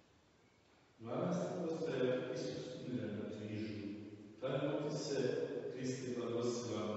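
An older man chants slowly and steadily in an echoing hall.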